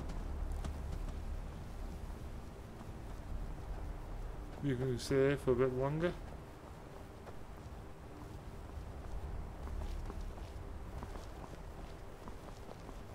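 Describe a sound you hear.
Footsteps crunch steadily on a stony path.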